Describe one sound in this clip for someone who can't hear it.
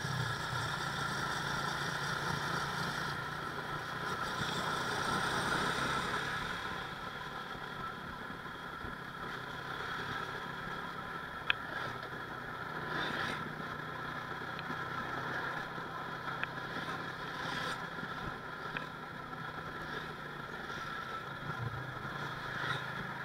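A motorcycle engine hums steadily while riding along a road.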